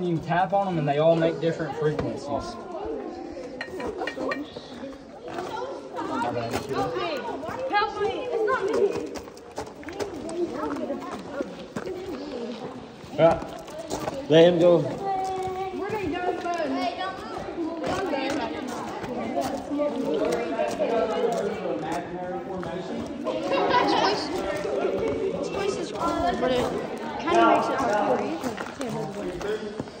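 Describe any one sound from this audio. Several young people talk loudly nearby, their voices overlapping.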